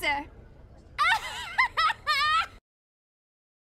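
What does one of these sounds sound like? A woman laughs shrilly.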